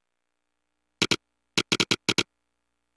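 Short electronic blips chirp in quick bursts.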